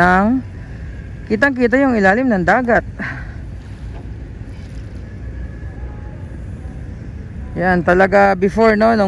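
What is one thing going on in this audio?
Shallow water laps gently against a pebbly shore.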